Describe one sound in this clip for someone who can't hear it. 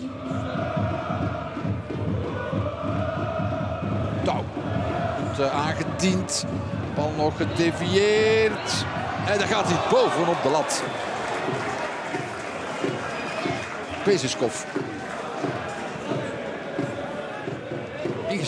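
A football is kicked hard on a pitch.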